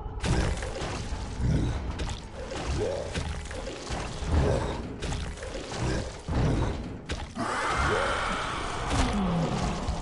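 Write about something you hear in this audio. Large wings beat with heavy, rhythmic whooshes.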